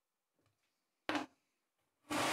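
A plastic lid snaps onto a bucket.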